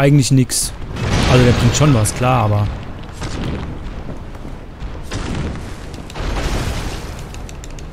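Heavy blows and thuds of a fight ring out.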